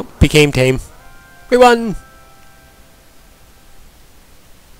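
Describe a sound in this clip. A short electronic victory jingle plays.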